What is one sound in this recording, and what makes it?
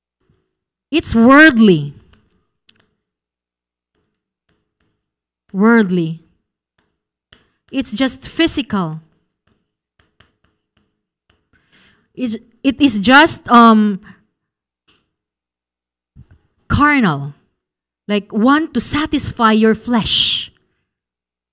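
A young woman speaks calmly into a microphone, in short phrases with pauses.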